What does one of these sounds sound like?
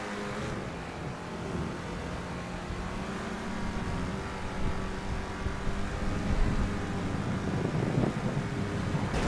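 Tyres roll on asphalt.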